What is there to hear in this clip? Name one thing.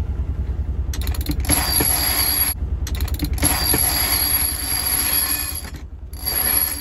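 A winch ratchets in quick bursts as a line is cranked in.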